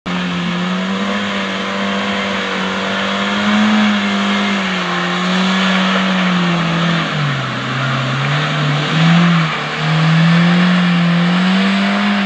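A car engine roars and revs as it strains through deep mud.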